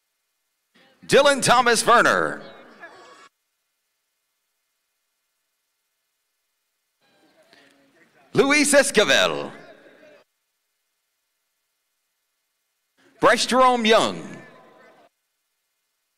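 A man announces loudly through a loudspeaker, in short bursts.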